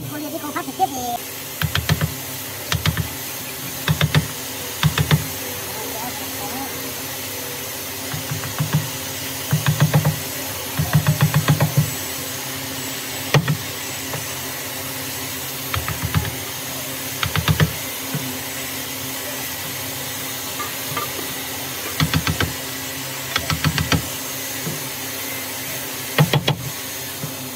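A wooden mallet knocks sharply on a chisel in bursts of quick blows.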